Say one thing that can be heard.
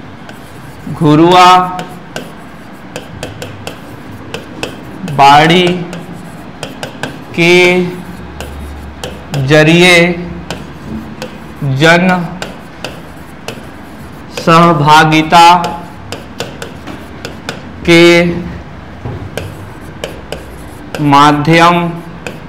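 A young man speaks in short, drawn-out phrases nearby.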